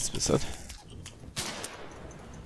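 A shotgun fires a single loud blast.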